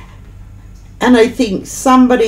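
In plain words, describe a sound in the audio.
A middle-aged woman speaks close to a microphone with animation.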